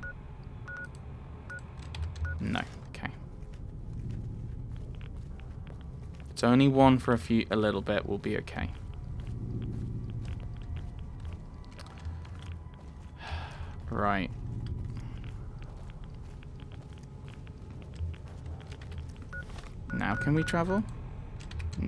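Short electronic beeps chirp.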